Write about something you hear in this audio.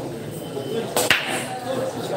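A cue ball cracks into the racked pool balls.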